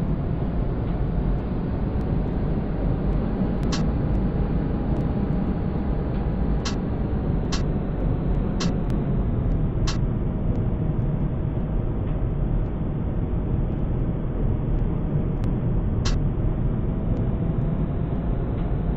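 A tram rumbles steadily along its tracks.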